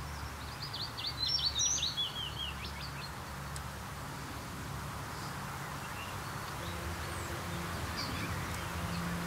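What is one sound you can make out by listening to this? A pheasant rustles through the grass.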